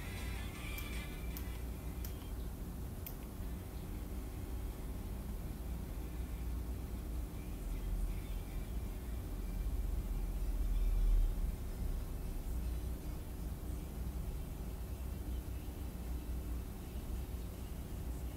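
A small handheld device buzzes steadily close by.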